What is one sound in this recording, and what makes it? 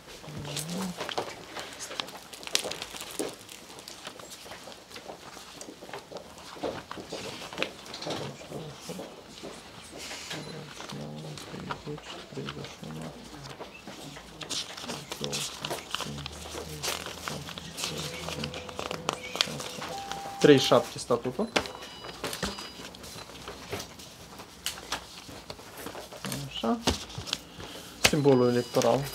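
Paper rustles as pages are turned and handled.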